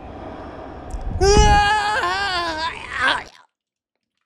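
A young man screams in fright into a close microphone.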